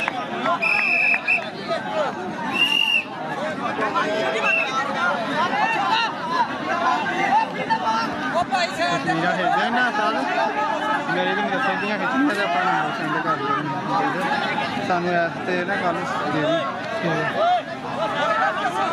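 A large outdoor crowd of men chatters and shouts all around.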